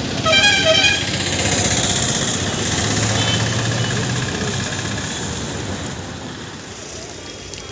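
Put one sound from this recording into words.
A motorcycle engine hums as it passes close by.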